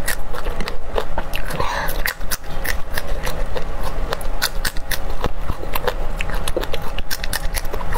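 A young woman crunchily chews raw chili peppers close to a microphone.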